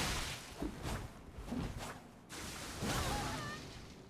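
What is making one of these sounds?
Metal clangs as blades strike.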